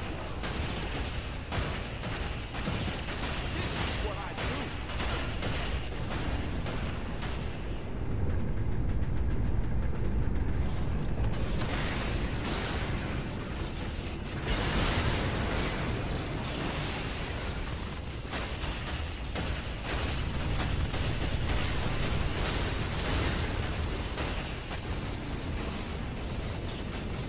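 A video game's gunfire crackles.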